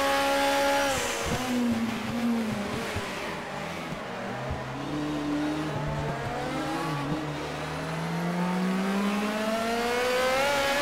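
A race car engine slows for a corner with its pitch falling and then climbs again.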